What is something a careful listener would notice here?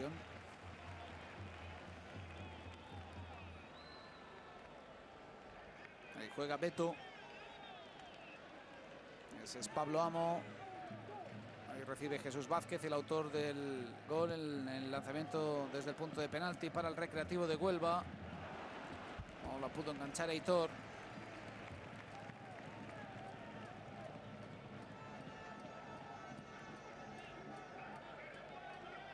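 A large stadium crowd murmurs steadily outdoors.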